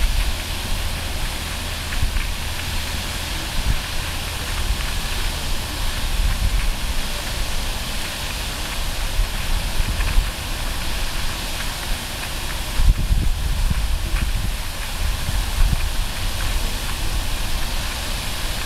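A fountain's spray splashes steadily onto a lake.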